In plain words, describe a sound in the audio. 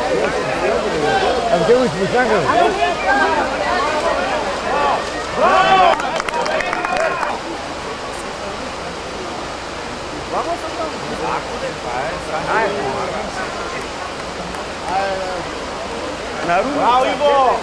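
Water splashes as men wade through the river.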